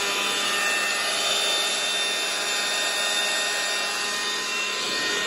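An electric power tool motor runs with a steady whirring hum.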